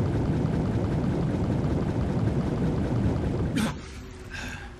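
Water rumbles and gurgles in a deep, muffled roar.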